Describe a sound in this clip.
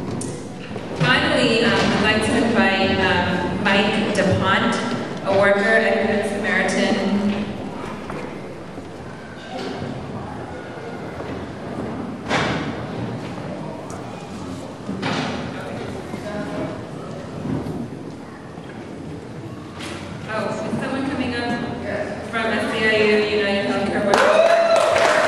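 A woman sings into a microphone, heard through loudspeakers in a large hall.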